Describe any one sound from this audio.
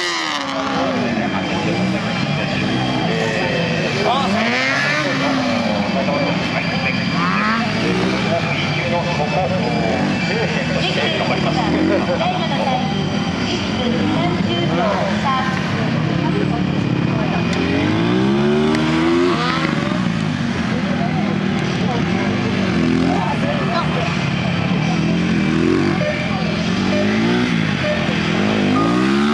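A motorcycle engine revs up and down repeatedly.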